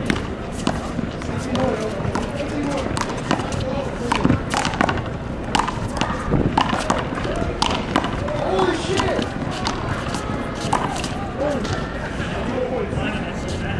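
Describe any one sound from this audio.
A rubber ball smacks against a wall and the pavement again and again, outdoors.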